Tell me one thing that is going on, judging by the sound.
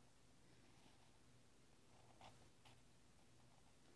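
A felt-tip marker squeaks and scratches faintly on paper.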